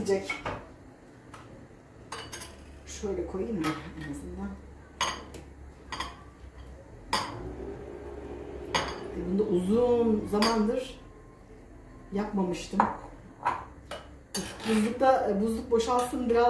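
A spoon taps and scrapes against a bowl.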